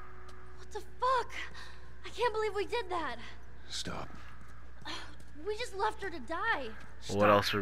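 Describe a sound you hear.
A young girl speaks in an upset, shocked voice.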